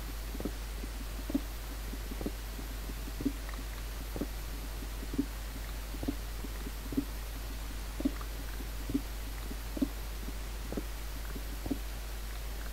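Soft, muffled thuds repeat steadily as dirt is dug away.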